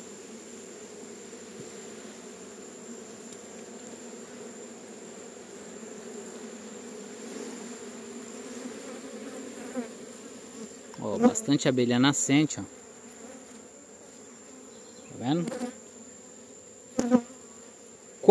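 A swarm of bees hums and buzzes steadily up close.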